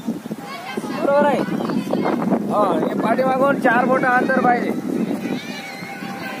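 A crowd of children chatters nearby outdoors.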